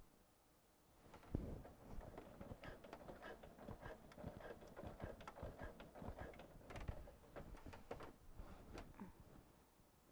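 Quilted fabric rustles and shifts as it is pushed along.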